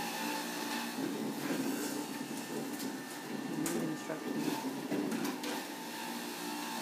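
Leafy greens rustle and crunch as they are pushed into a juicer.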